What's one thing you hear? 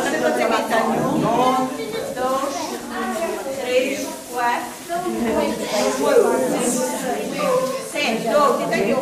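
A crowd of young people chatters and talks over one another close by.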